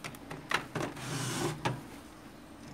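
Plastic scrapes against plastic as a cover slides out.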